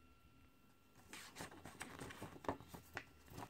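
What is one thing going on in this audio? Hands open and handle a clear plastic disc case, which clicks and creaks.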